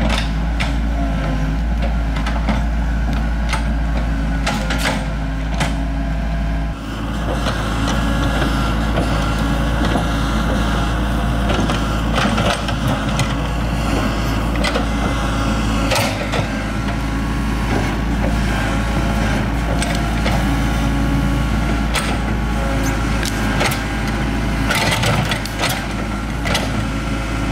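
An excavator bucket scrapes and digs into soil.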